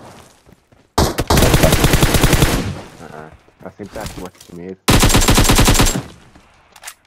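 A rifle fires rapid bursts of shots at close range.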